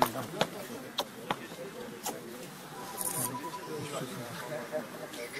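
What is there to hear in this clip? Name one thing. A crowd of men talks and shouts close by.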